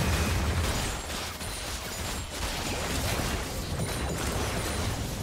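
Magic spells whoosh and crackle as fighters clash in a video game battle.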